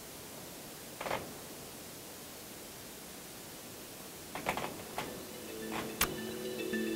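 A microphone rustles and knocks against clothing.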